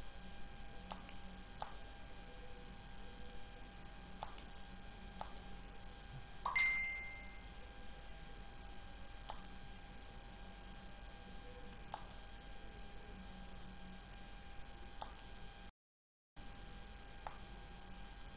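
Short electronic beeps sound now and then as game text advances.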